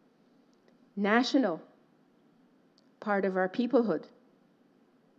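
A woman speaks calmly into a microphone in a room with slight echo.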